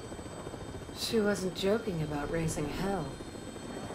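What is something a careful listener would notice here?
A young woman speaks quietly and tensely.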